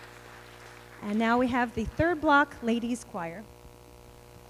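A choir of young women sings in a large hall.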